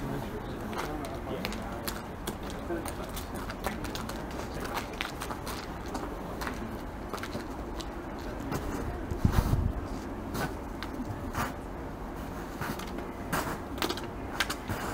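Snow crunches softly as a lynx digs and sniffs in it.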